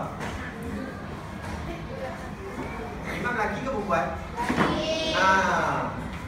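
Children's voices chatter close by.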